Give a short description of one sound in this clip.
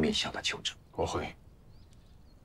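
A man answers briefly in a calm voice.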